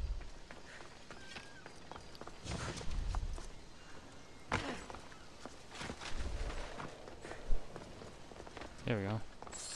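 Footsteps run across stone.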